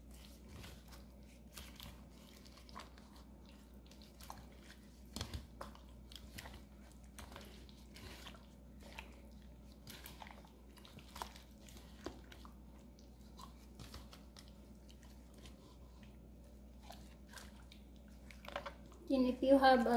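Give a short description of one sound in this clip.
Gloved hands squish and squelch meat in a wet marinade.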